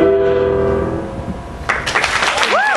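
A piano's last chord rings out and fades.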